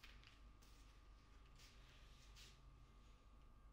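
A door opens quietly.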